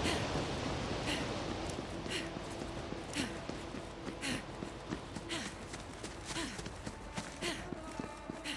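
Footsteps tread steadily on stone at a walking pace.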